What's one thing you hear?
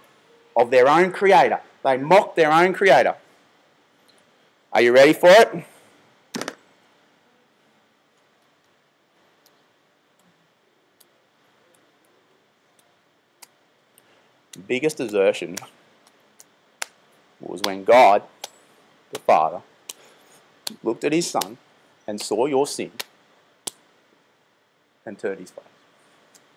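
A man speaks calmly and close to a microphone, with pauses between phrases.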